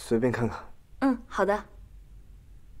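A young woman speaks briefly and cheerfully nearby.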